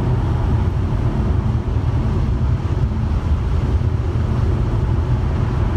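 A car's engine hums steadily.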